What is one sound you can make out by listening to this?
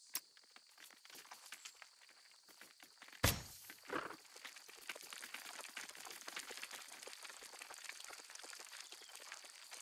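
Many small insects skitter and rustle over dry ground.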